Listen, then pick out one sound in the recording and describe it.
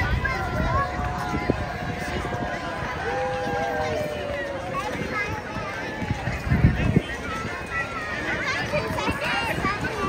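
A crowd of onlookers chatters and calls out outdoors.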